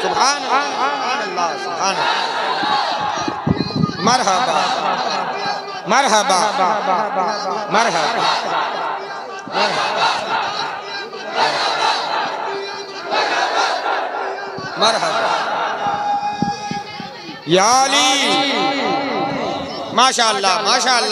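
A man chants loudly through a microphone with echo.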